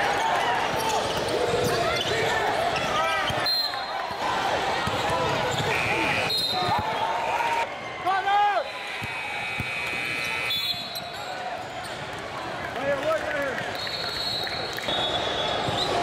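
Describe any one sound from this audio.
Sneakers squeak sharply on a hardwood court.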